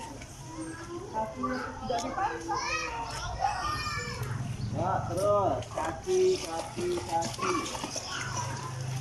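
A child's voice calls out in high tones.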